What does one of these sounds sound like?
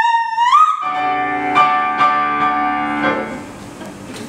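A woman sings a long, high operatic note that rises and then ends.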